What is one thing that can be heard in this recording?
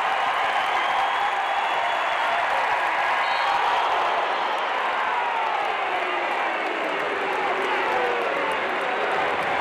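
A large crowd cheers and roars loudly in an echoing arena.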